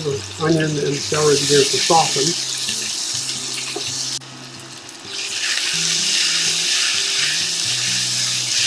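A spatula scrapes and stirs in a metal pan.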